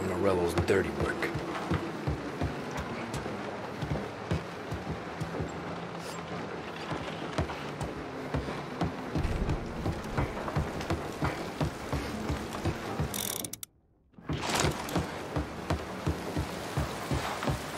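Quick footsteps thud on wooden floorboards.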